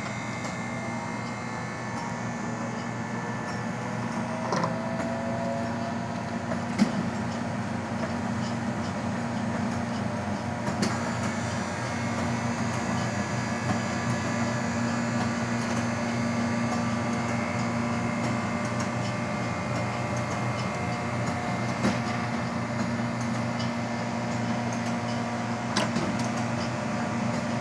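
A soft-serve machine hums steadily.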